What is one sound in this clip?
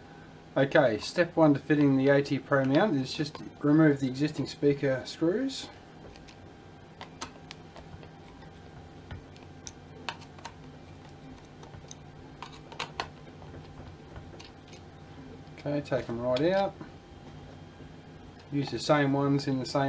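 A screwdriver clicks and taps against plastic parts.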